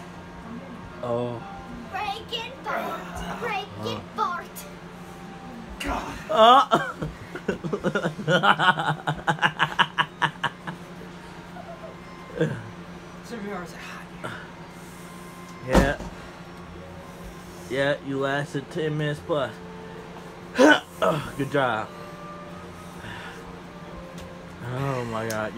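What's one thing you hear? A young man talks and laughs nearby.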